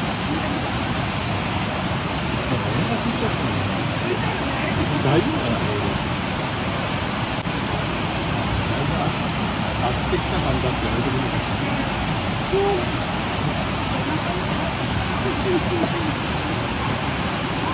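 Water rushes steadily down a bamboo chute.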